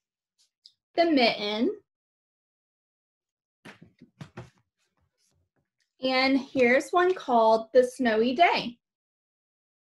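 A young woman reads aloud clearly, close to a microphone.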